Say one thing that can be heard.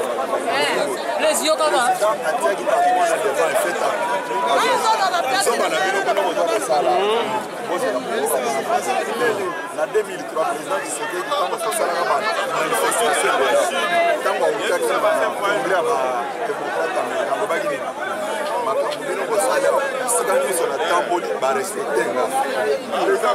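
A middle-aged man speaks forcefully and with animation, close by.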